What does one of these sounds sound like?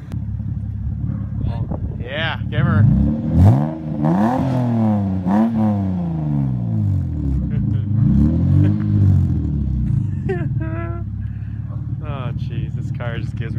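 A car engine idles with a deep, rumbling exhaust burble.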